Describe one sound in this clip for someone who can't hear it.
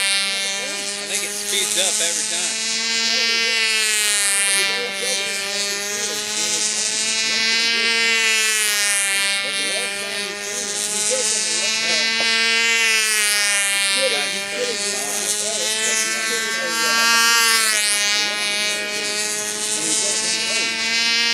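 A small model aircraft's motor whines overhead, rising and falling in pitch.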